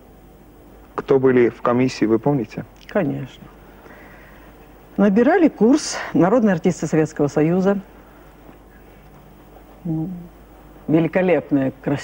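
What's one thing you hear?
A woman speaks calmly and with feeling, close to a microphone.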